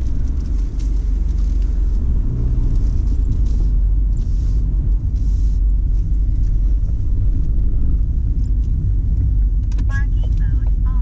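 Wind roars loudly through an open car window as the car drives.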